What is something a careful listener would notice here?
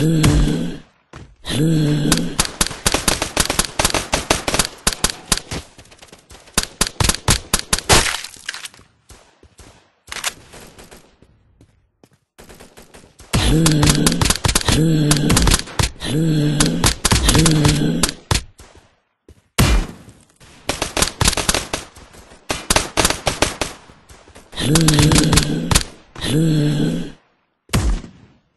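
A rifle fires in rapid bursts of sharp cracks.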